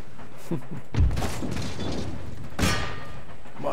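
Cannons boom and explosions burst in a battle.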